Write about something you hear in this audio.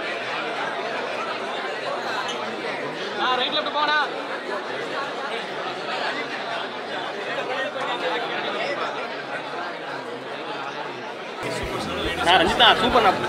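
A dense crowd of young men and women chatters and calls out all around, close by.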